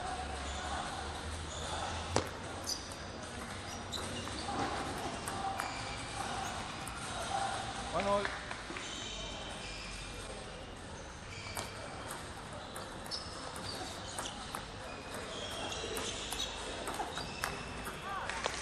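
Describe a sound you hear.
Players' shoes squeak on the floor.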